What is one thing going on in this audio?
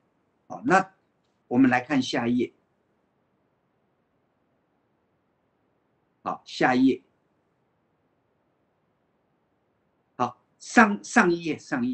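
An elderly man speaks calmly in short phrases through a microphone on an online call.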